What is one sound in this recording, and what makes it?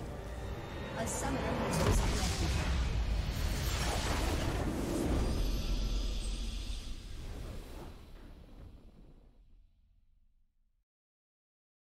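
A triumphant victory fanfare swells and fades away.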